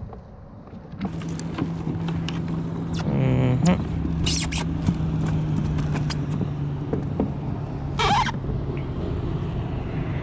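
A fish flaps and thumps inside a net.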